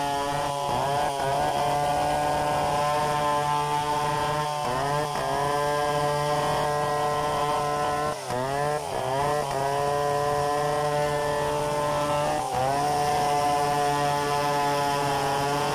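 A large two-stroke chainsaw rips lengthwise through a log under load, its engine briefly bogging down.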